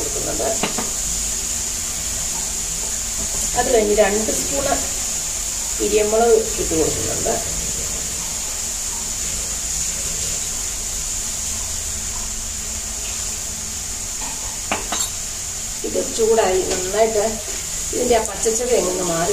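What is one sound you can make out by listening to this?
A spoon scrapes and stirs against a pan.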